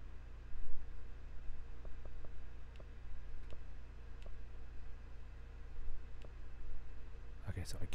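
A menu clicks as options are selected.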